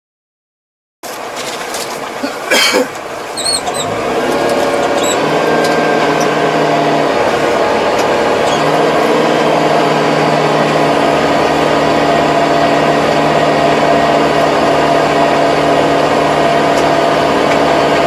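A rotary tiller churns through soil.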